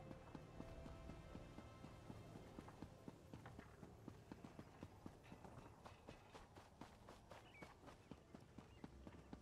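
Footsteps tap quickly and steadily on stone.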